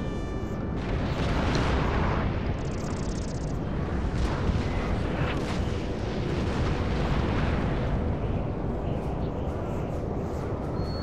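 Musket volleys crackle and pop in the distance.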